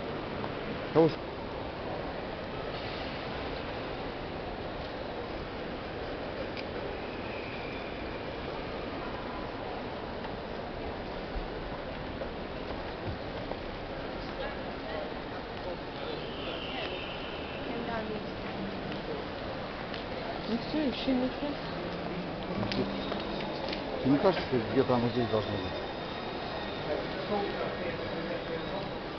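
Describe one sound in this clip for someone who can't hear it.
Distant voices murmur and echo through a large indoor hall.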